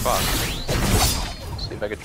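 A blade swishes through the air.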